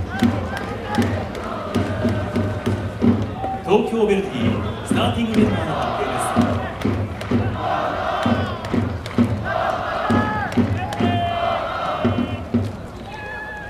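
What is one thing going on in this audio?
A large crowd of fans chants and sings loudly in an open stadium.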